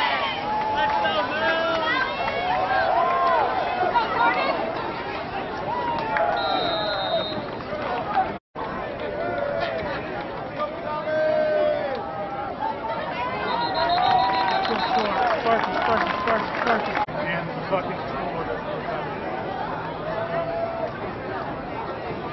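A crowd of young men shouts and cheers nearby, outdoors.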